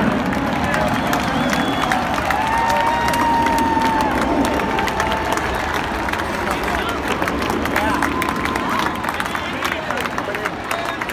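A large crowd cheers and whistles in an open stadium.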